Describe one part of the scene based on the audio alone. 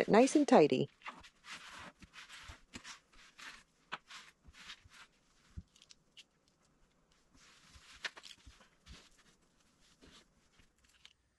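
A cloth scrubs and wipes along a wooden shelf.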